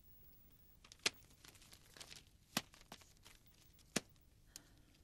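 A wooden drawer knocks and clicks as it is handled.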